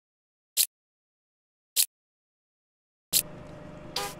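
Short menu clicks sound three times.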